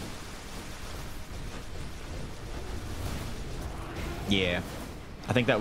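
Magic blasts burst and crackle.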